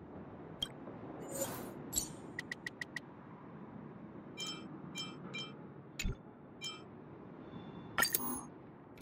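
Soft electronic menu clicks and chimes sound as selections change.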